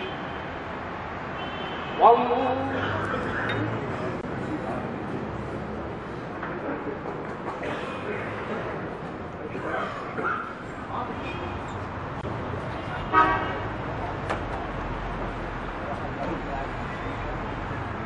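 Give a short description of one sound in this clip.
Men murmur in low voices in a large echoing hall.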